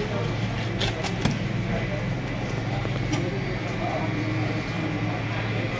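A knife scrapes and cuts through fish flesh on a wooden board.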